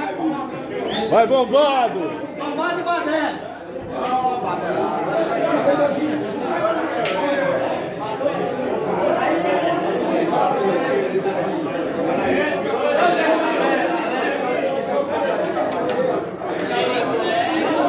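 Several men talk and shout over one another nearby.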